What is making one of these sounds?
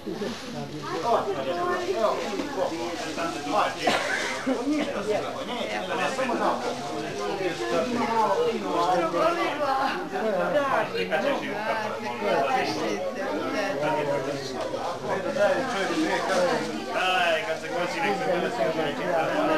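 Children chatter and call out all around.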